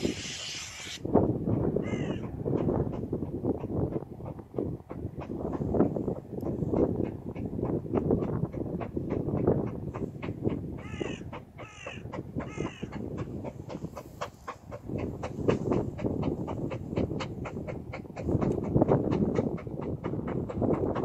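A steam locomotive chuffs rhythmically in the distance, getting steadily closer.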